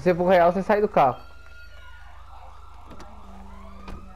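A car door clicks open.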